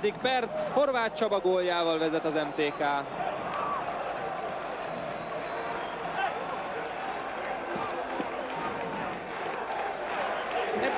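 A large crowd cheers and roars steadily in a stadium.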